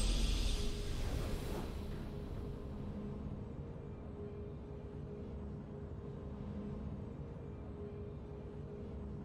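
A triumphant game fanfare swells and fades.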